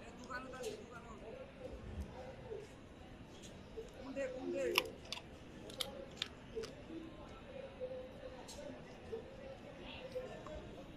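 A dog chews and crunches food close by.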